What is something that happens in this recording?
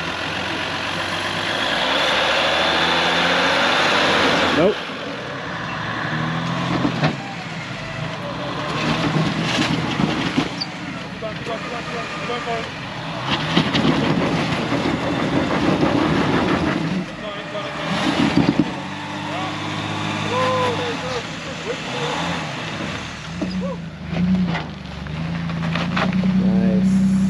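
An off-road vehicle's engine rumbles and revs as it crawls over rock.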